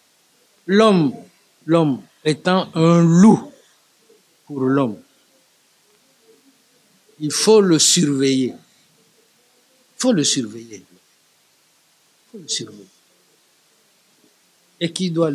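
An elderly man speaks calmly and slowly into a nearby microphone, with pauses.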